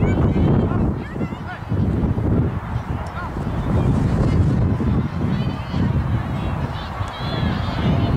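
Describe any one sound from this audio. Wind blows hard across an open field, rumbling throughout.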